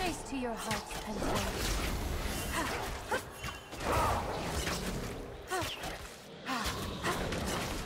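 Magic spells whoosh and crackle as game characters fight.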